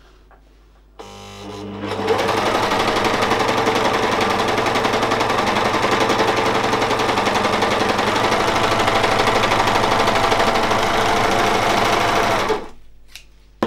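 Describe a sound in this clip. A serger sewing machine whirs rapidly as it stitches fabric.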